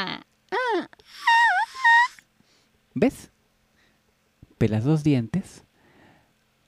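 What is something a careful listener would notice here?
A young girl speaks hesitantly and close by.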